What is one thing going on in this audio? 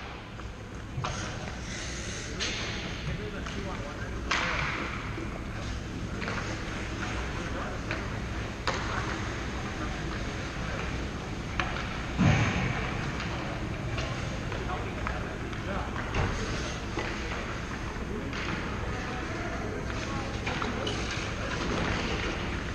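Hockey sticks and pucks clack sharply, echoing in a large rink.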